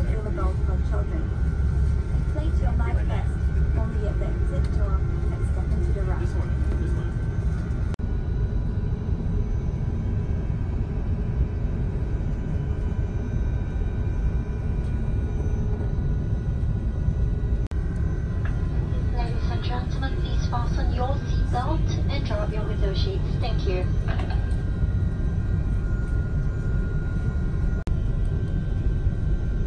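Jet engines roar steadily with a deep rumble, heard from inside an aircraft cabin.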